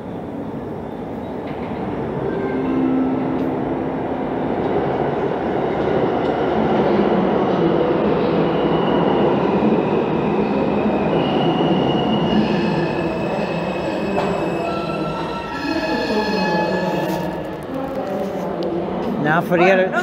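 A subway train rumbles into an echoing underground station, growing louder as it nears.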